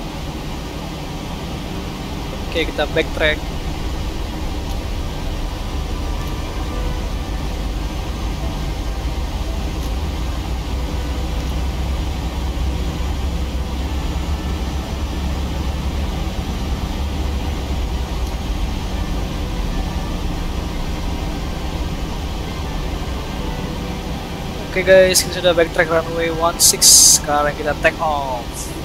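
Jet engines hum steadily at low power as an airliner taxis.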